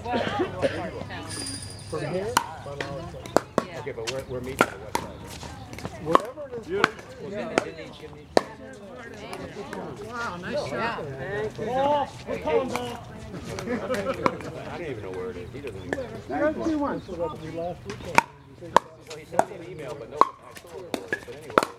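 Pickleball paddles hit a plastic ball with sharp pops outdoors.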